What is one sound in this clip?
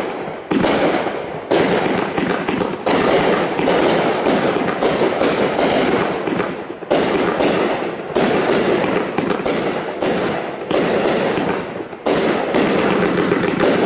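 Fireworks burst overhead in a rapid string of sharp bangs.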